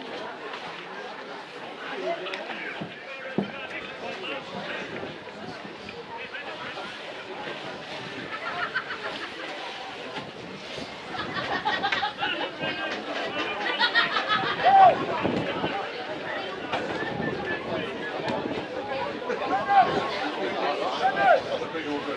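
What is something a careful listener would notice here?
A crowd of spectators shouts and cheers outdoors, growing louder.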